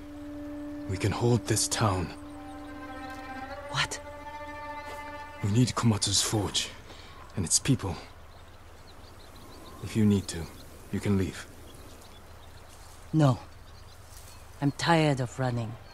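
A woman answers tersely and firmly.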